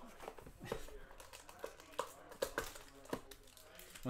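Foil crinkles as a pack is pulled from a box.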